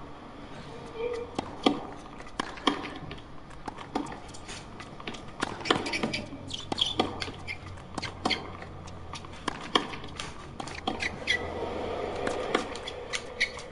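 Tennis balls are struck sharply with rackets and bounce in a rally.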